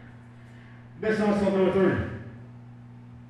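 A young man shouts briefly over a crowd in a large echoing room.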